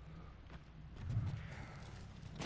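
A heavy thud sounds as a person drops to a wooden floor.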